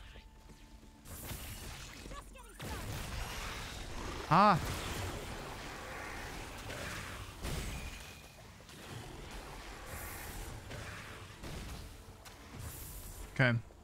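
Game weapons fire and blast in a battle.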